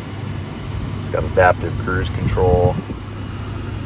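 A man speaks briefly close by.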